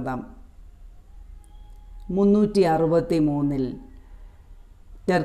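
A young woman sings slow, drawn-out notes close by.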